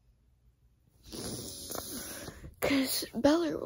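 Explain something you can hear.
A hand rubs and brushes against the microphone.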